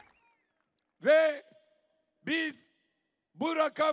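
A middle-aged man speaks forcefully through a microphone and loudspeaker outdoors, in short loud phrases.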